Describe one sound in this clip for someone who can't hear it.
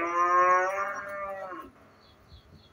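A dog whines in a high, drawn-out voice.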